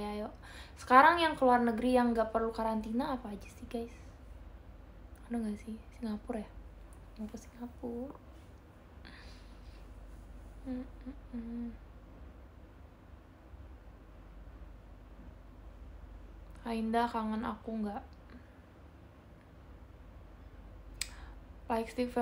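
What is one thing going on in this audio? A young woman talks close to a microphone, in short bursts with pauses.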